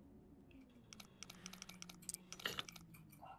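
A safe's combination dial clicks rapidly as it turns.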